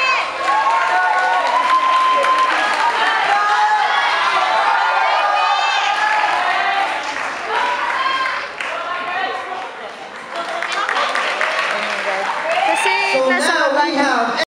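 A group of young performers sing together loudly in a large hall.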